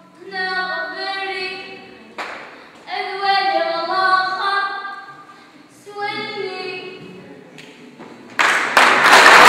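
A young woman sings in a large echoing hall.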